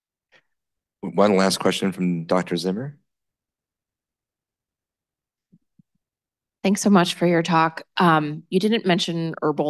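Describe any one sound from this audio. A man lectures through a microphone, pausing between phrases.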